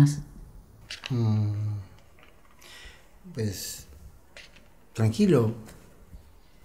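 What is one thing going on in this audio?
A middle-aged man speaks quietly, close by.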